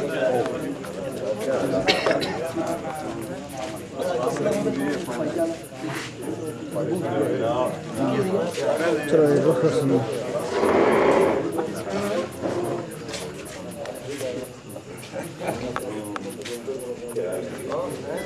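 A crowd of men talk and greet each other close by.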